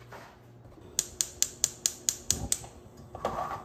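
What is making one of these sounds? A gas stove igniter clicks rapidly.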